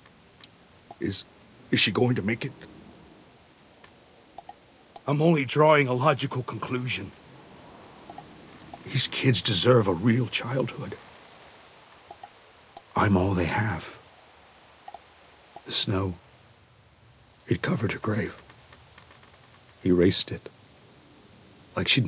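A man speaks calmly and gravely in short lines, close up.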